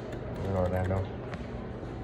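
A button clicks as it is pressed.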